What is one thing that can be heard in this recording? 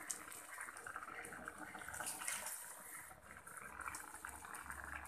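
Liquid simmers and bubbles in a pot.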